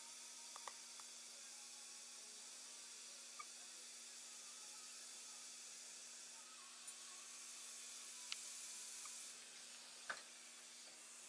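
Metal surgical instruments click faintly now and then.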